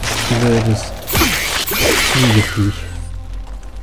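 A burst of fire crackles and roars.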